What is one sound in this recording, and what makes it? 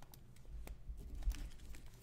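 Hands shuffle and flick through a stack of trading cards.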